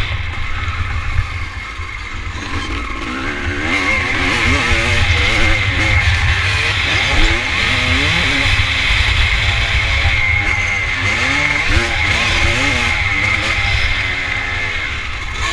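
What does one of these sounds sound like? A dirt bike engine revs and roars up close, rising and falling in pitch.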